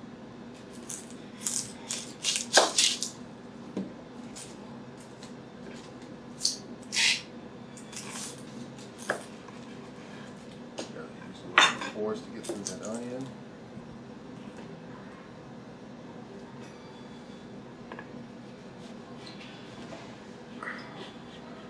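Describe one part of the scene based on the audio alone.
A knife slices through an onion with crisp crunching cuts.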